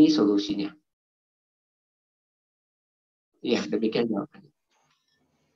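A woman speaks calmly into a microphone, heard through an online call.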